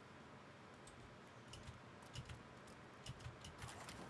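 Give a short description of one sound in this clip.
Light wooden knocks patter as a small figure climbs a ladder.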